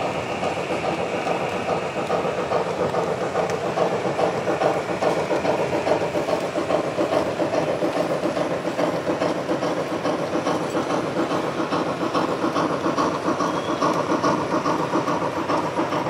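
A model steam locomotive chuffs rhythmically as it runs along its track.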